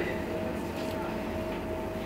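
A chest freezer hums steadily.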